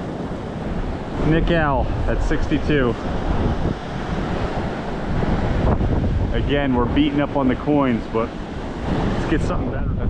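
Shallow surf washes and fizzes over wet sand.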